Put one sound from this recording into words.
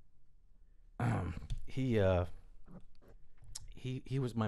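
A middle-aged man speaks calmly into a microphone, close by.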